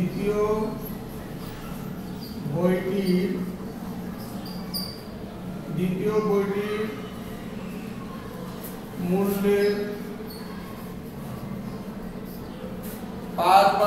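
A man speaks in short, calm phrases.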